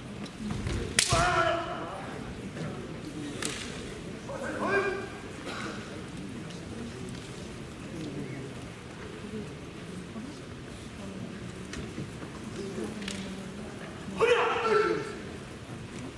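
Men shout loud, drawn-out battle cries.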